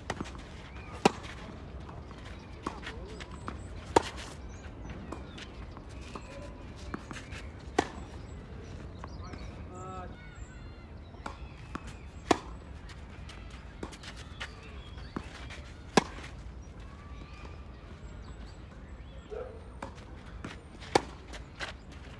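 Tennis rackets strike a ball in a rally, with sharp pops echoing outdoors.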